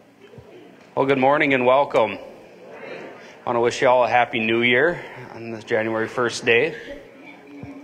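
A young man speaks calmly through a microphone into a hall with a slight echo.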